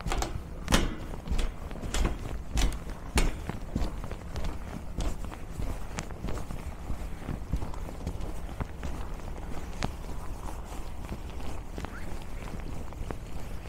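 Footsteps crunch steadily on packed snow close by.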